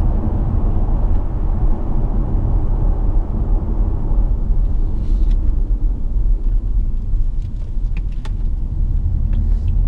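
Tyres roar on the road surface, easing slightly as the car slows.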